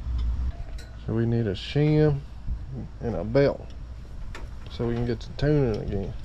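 A man talks quietly nearby.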